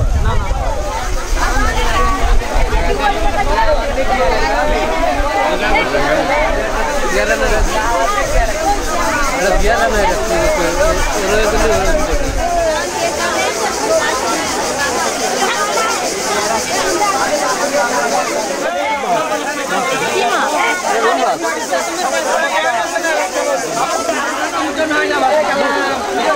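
Many men and women chatter at once nearby.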